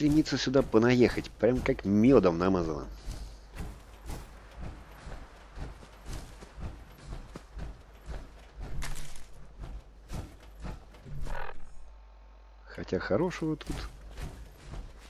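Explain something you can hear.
Heavy metal-clad footsteps thud steadily on dirt.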